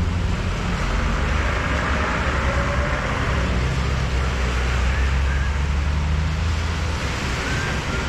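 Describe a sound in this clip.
A bus rumbles by.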